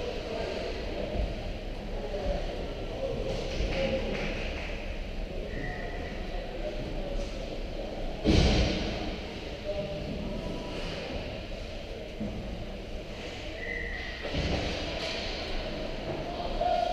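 Skates scrape and sticks clatter faintly on the ice in a large echoing rink.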